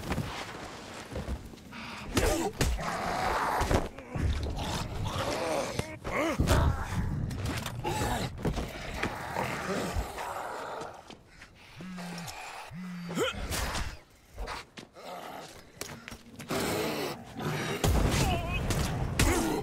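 Blows thud as zombies are struck.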